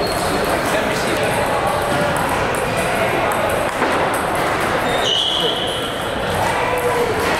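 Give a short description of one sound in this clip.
Table tennis balls click and bounce on tables in a large echoing hall.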